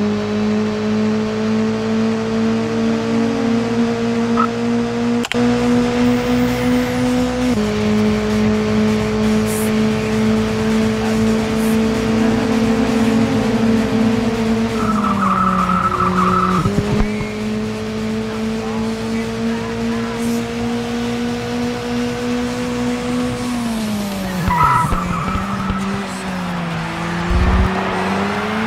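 A racing car engine drones steadily, dropping in pitch at each gear change.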